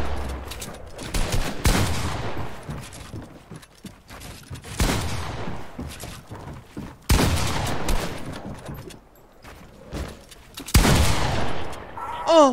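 Loud bursts of gunfire and building thuds from a video game ring out.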